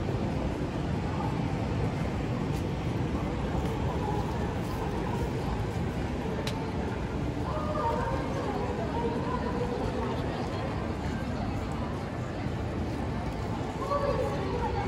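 Voices of people chatter nearby.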